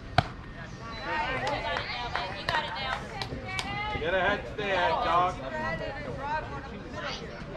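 People shout and cheer outdoors.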